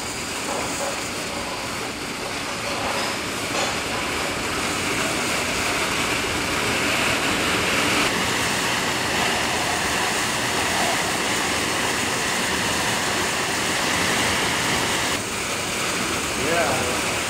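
A fan hums steadily as air rushes out in a strong, constant whoosh.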